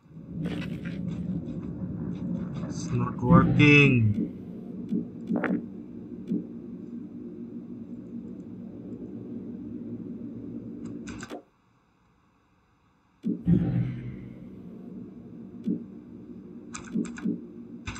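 A low, eerie drone hums steadily.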